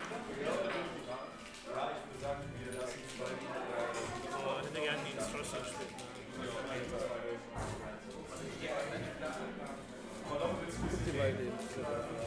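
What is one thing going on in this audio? Several young men talk casually nearby, in a room full of chatter.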